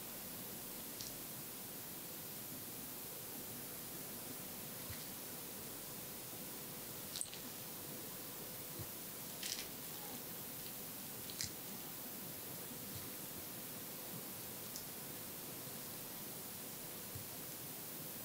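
Fingers pick and scratch with small, soft clicks close by.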